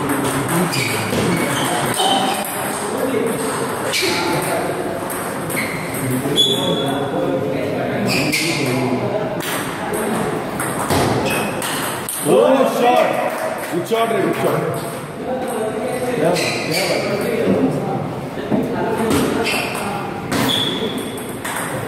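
A table tennis ball clicks back and forth between paddles and table in a large echoing hall.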